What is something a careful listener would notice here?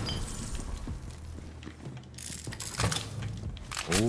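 A metal chest lid clanks open.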